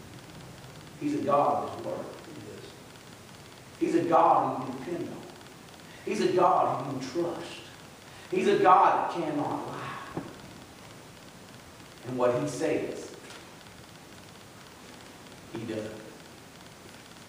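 An elderly man speaks slowly and deliberately in short phrases with pauses, through a microphone in a room with some echo.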